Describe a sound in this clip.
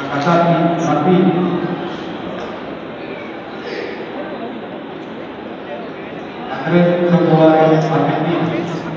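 A person talks nearby in a large echoing hall.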